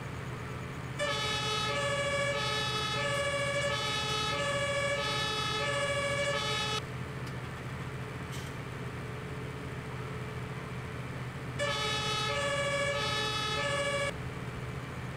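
A fire truck siren blares in a two-tone wail, stopping and starting again.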